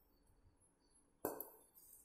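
A spoon scrapes against a metal plate.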